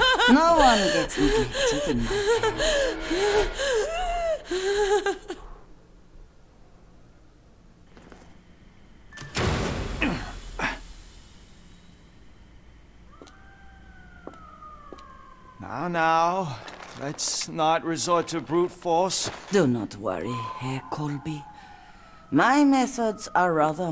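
A woman speaks in a soothing, coaxing voice close by.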